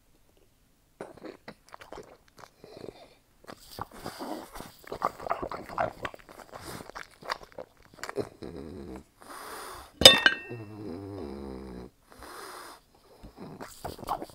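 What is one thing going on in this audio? A metal fork clinks against a plate.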